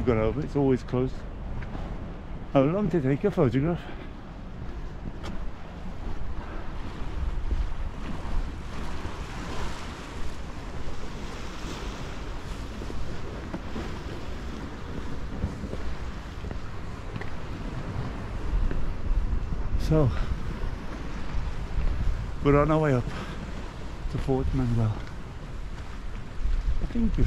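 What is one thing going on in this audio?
An older man talks calmly close to the microphone.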